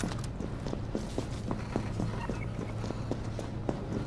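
Footsteps thud on a floor.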